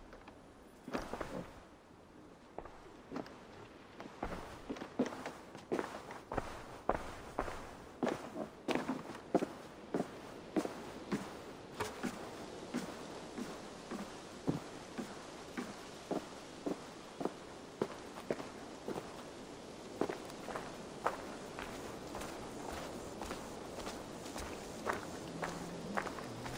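Footsteps thud steadily on wooden boards and then on a dirt path.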